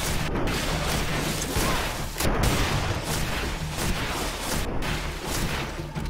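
A musket fires with a loud crack.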